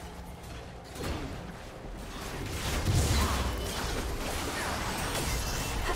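Magic spells burst and crackle in a video game fight.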